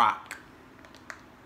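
A girl speaks briefly close by.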